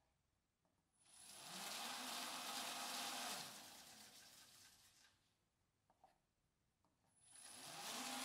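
A sanding belt whirs loudly on a running machine.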